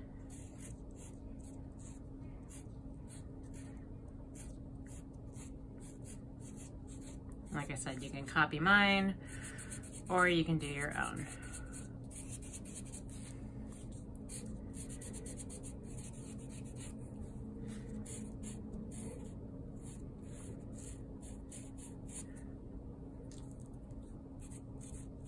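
A felt-tip marker squeaks and scratches across cardboard in short strokes.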